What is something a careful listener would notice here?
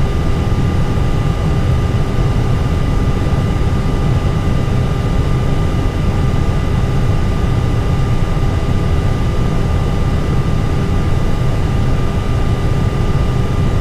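An aircraft's tyres rumble over the pavement as it taxis.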